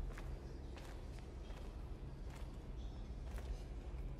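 Footsteps scuff slowly across a gritty concrete floor.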